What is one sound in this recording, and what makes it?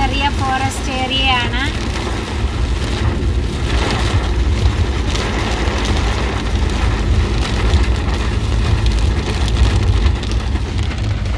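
Strong wind roars through trees outdoors.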